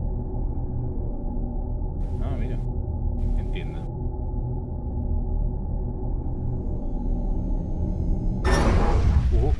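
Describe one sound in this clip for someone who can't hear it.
A deep magical portal hum drones steadily.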